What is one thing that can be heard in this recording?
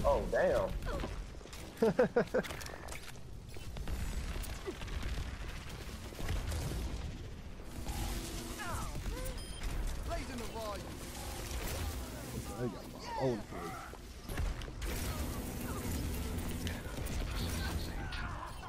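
Energy weapon blasts fire in rapid bursts.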